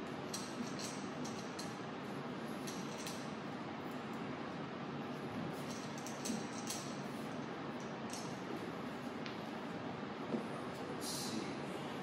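Metal tripod legs click and rattle as they are adjusted by hand.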